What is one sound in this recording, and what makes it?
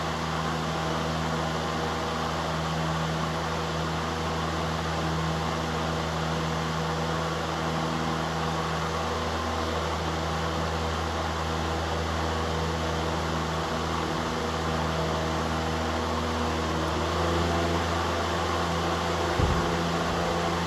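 Electric fans whir and hum steadily up close.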